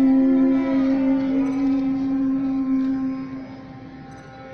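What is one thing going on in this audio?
A woman sings a long held note through a microphone in a large hall.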